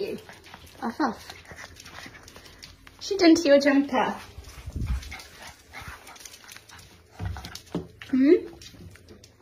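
A puppy yelps and whines close by.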